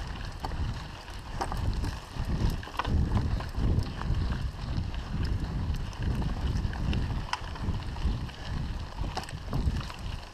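Bicycle tyres crunch over a bumpy dirt trail.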